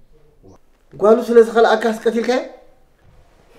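An older man speaks with animation, close by.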